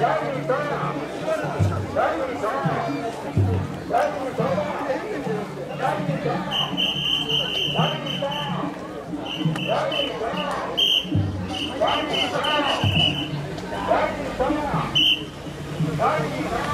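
A large outdoor crowd of men chants and calls out loudly in rhythm.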